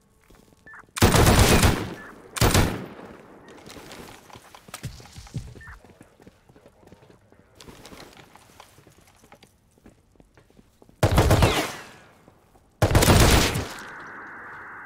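A machine gun fires short, loud bursts that echo.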